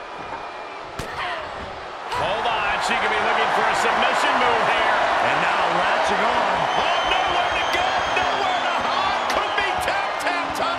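Heavy blows land with sharp slaps.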